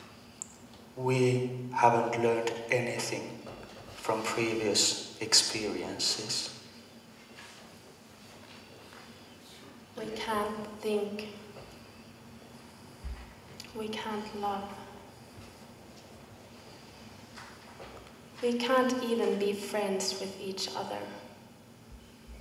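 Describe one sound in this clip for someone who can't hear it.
Young performers speak in turns on a stage, their voices echoing in a hall.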